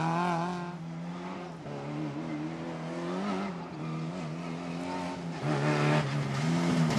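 A rally car engine revs hard and changes gear as it speeds closer.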